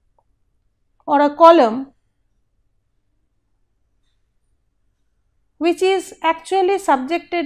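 A middle-aged woman speaks calmly into a close microphone, lecturing.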